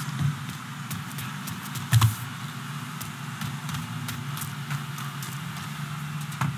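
Footsteps run quickly over gravel.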